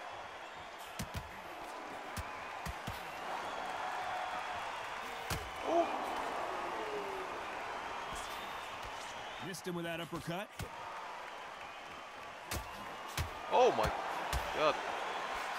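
Punches thud against bodies in quick, sharp blows.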